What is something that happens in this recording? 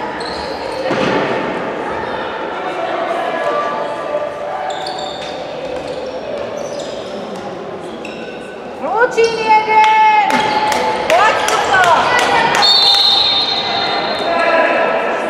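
Young girls shout to each other in an echoing hall.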